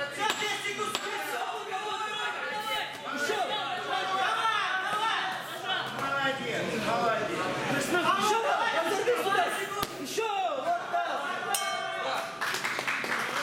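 Men in a crowd shout encouragement in an echoing hall.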